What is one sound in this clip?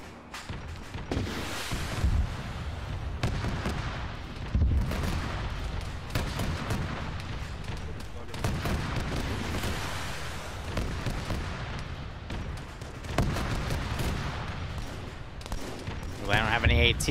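Gunfire crackles and explosions boom in a distant battle.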